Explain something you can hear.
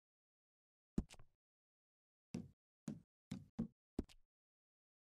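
Menu clicks tick sharply, one at a time.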